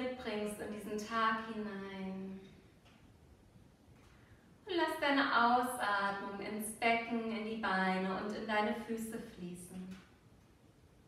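A woman speaks calmly and softly, close by.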